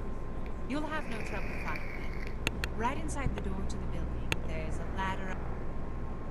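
A young woman speaks calmly and kindly, close by.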